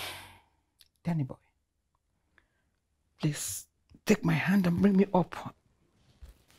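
An elderly woman speaks weakly and slowly.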